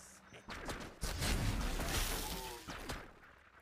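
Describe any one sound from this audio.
Explosions boom with heavy, low rumbles.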